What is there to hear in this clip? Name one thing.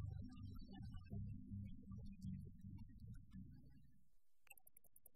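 Acoustic guitars play a lively melody.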